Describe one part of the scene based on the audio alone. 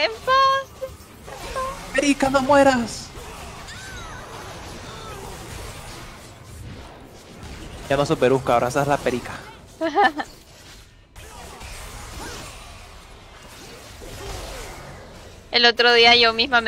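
Video game battle effects whoosh and clash in the background.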